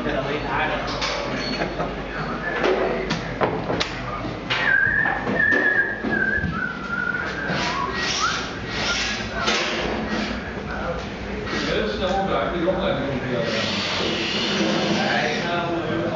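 Metal clatters and knocks in a busy, echoing room.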